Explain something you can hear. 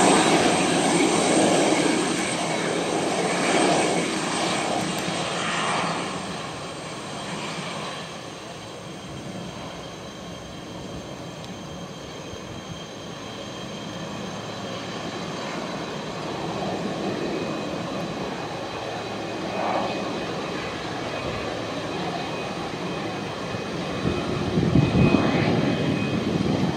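Jet engines whine with a steady high tone.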